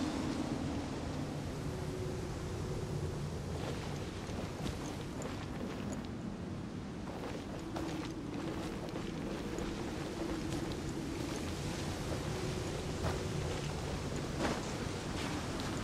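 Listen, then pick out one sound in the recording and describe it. A bow twangs as arrows fly off.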